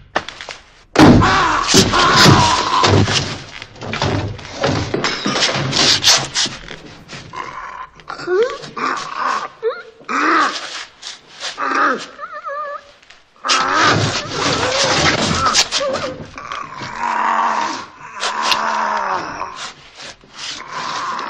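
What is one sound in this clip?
A man screams and chokes in panic.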